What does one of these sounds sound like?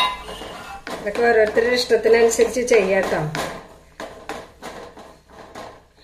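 A spatula scrapes and stirs inside a metal pan.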